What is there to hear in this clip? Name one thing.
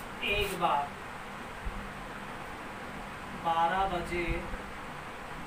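A young man speaks in a teaching tone, close by.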